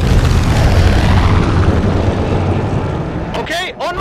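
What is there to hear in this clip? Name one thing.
A large propeller plane's engines drone loudly overhead.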